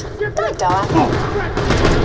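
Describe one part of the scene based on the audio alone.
Gunshots fire in quick bursts.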